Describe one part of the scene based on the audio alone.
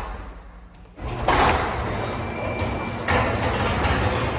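A garage door rumbles and rattles as it rolls open.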